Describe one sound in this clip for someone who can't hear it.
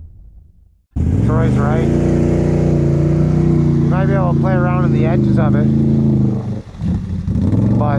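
An all-terrain vehicle's engine rumbles and revs close by.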